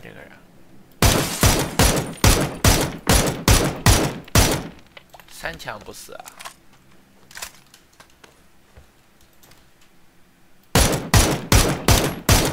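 A rifle fires a rapid string of loud, sharp shots.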